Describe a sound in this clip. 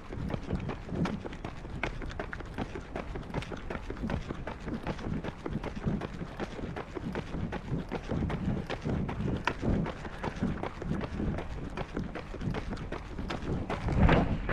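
Running footsteps slap on a paved path.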